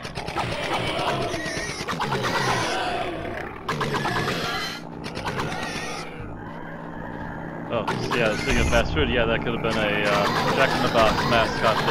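A paintball gun fires in quick bursts.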